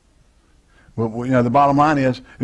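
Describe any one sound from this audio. A man speaks clearly through a clip-on microphone.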